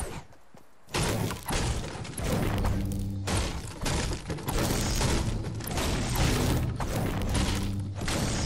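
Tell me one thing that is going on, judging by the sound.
A pickaxe strikes a wall again and again with sharp knocks.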